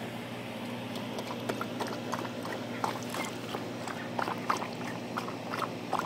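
A dog laps water noisily from a plastic tub.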